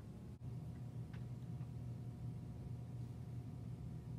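Computer keys clatter under typing.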